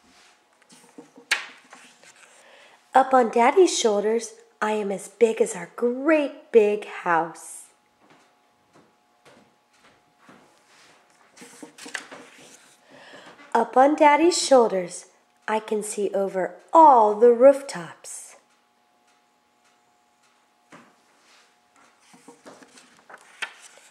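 A book's paper pages rustle as they are turned.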